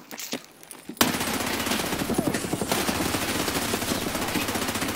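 A gun fires in rapid bursts at close range, echoing in an enclosed space.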